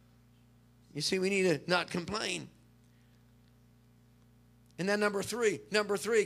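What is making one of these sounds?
An elderly man speaks with animation through a microphone.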